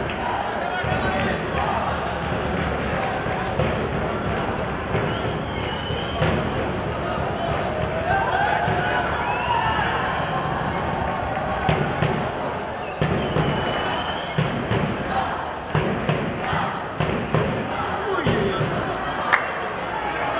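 A crowd murmurs and calls out across an open stadium.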